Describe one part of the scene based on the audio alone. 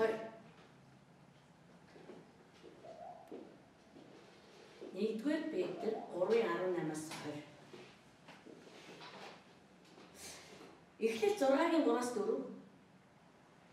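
A woman speaks calmly into a microphone, pausing between phrases.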